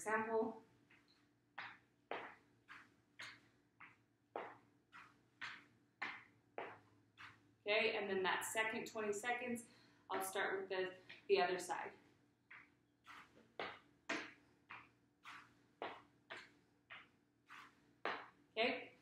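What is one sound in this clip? Shoes thump rhythmically on a chair seat.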